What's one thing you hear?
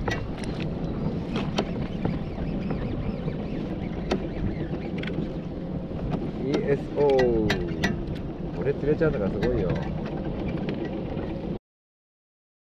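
Small waves lap against a kayak.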